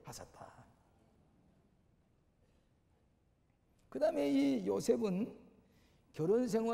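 An elderly man speaks slowly into a microphone in a large echoing hall.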